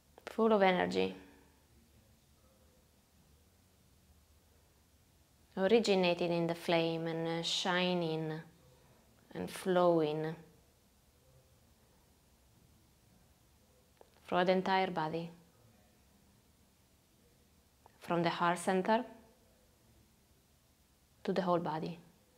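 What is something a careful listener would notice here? A young woman speaks calmly and softly in short phrases, close by.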